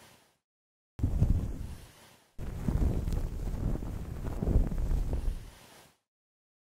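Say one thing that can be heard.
A towel rubs against fur.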